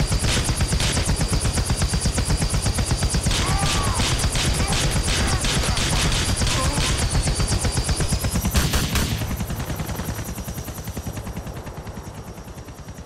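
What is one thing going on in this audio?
A helicopter's rotor chops loudly overhead, then fades away.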